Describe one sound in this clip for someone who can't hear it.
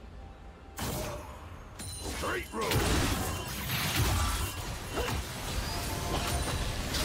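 Game sound effects of spells and attacks crackle and whoosh.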